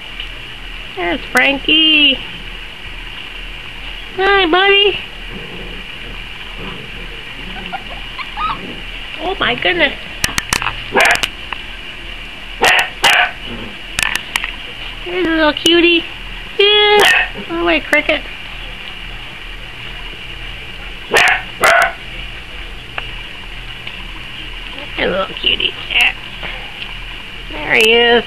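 Puppies whine and yelp in high, short cries.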